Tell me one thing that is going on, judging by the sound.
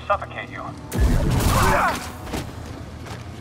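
Lightsaber blades clash and strike with a loud burst.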